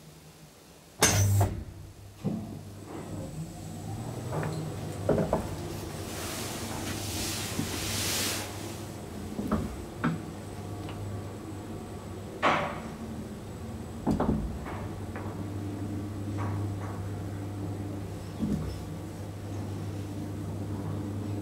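An elevator motor hums steadily as the car moves.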